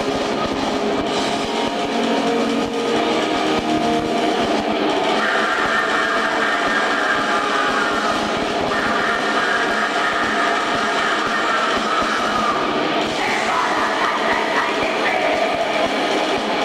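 A rock band plays loudly live, with drums and distorted guitars.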